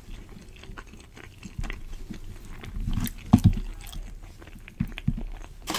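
Meat tears and squelches close to a microphone.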